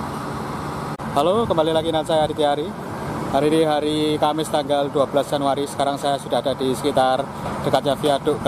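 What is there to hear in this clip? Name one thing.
A young man talks with animation close to the microphone.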